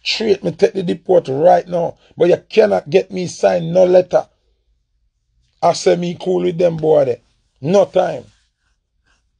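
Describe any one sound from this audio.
A man speaks with animation close to a phone microphone.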